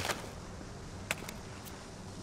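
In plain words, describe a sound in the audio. A gun fires a single sharp shot.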